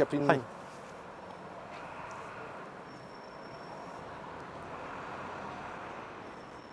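Footsteps tap on a pavement.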